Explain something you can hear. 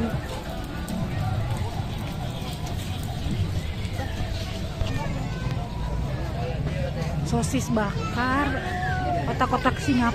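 A crowd chatters all around.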